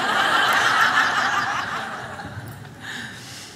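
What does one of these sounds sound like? A large audience claps and cheers, then fades.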